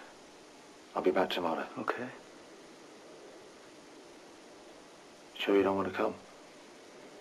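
A young man speaks quietly in short phrases, close by.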